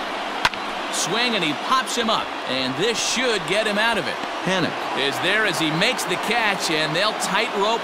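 A crowd cheers loudly.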